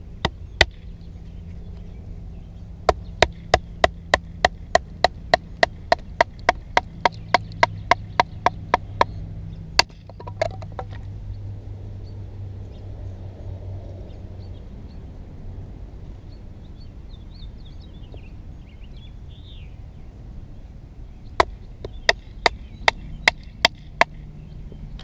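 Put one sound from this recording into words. A wooden baton knocks sharply and rapidly on the back of a knife blade.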